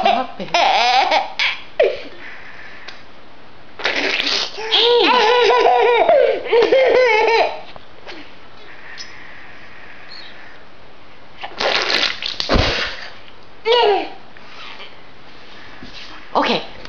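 A young child laughs and squeals excitedly up close.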